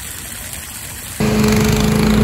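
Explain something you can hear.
Water gushes from a hose onto the ground.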